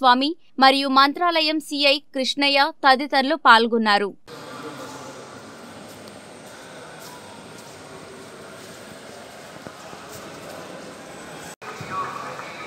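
Several people walk with footsteps on a stone floor.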